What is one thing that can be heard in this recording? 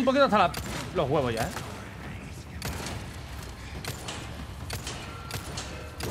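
Heavy footsteps thud down metal stairs.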